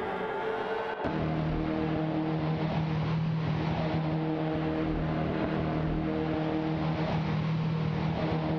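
A racing car engine roars steadily up close.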